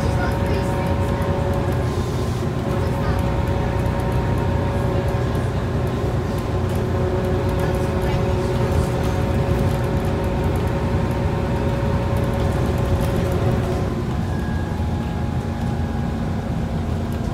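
The inside of a bus rattles and creaks as it drives along.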